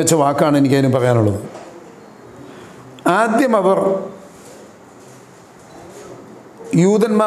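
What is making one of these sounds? An elderly man speaks earnestly and close to the microphone, in short bursts with pauses.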